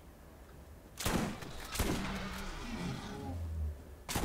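A gun fires loud shots with a ringing tail.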